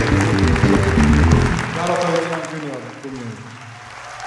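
A band plays music on stage and ends.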